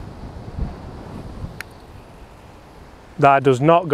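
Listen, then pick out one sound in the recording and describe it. A putter taps a golf ball with a light click.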